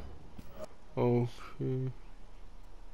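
Two short electronic menu tones chime, one after the other.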